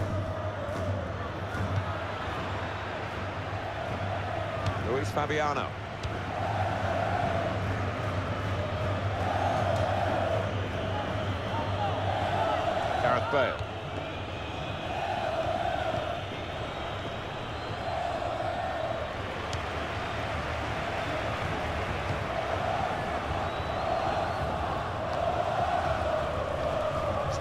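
A stadium crowd chants and roars steadily.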